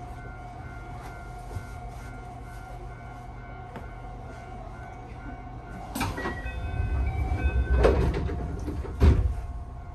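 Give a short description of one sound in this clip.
A train hums steadily while standing still.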